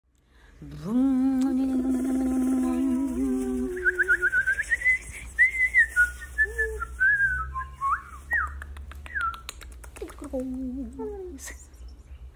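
A young woman hums long held notes over an online call.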